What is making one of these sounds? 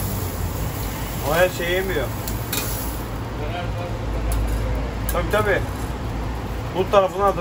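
Food sizzles softly on a hot grill.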